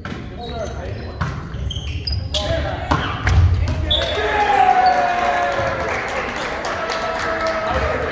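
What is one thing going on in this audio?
Shoes squeak sharply on a gym floor.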